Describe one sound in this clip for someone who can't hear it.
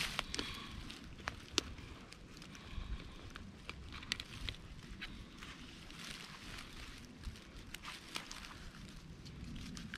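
Small clicks and rustles come from gloved hands.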